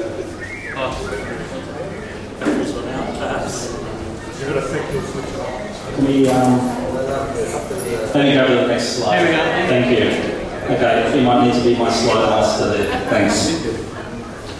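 A middle-aged man speaks into a microphone to an audience in an echoing hall.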